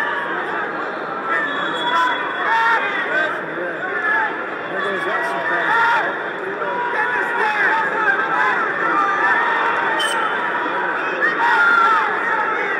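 A large crowd cheers and shouts throughout in a big echoing arena.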